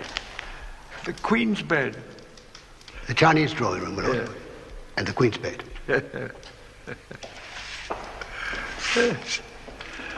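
An elderly man speaks in a raised, animated voice.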